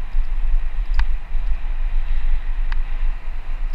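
A bicycle frame rattles sharply over bumps.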